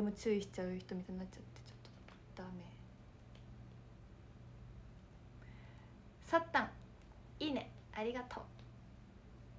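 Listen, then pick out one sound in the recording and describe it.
A young woman talks calmly and softly close to a microphone, in short bursts with pauses.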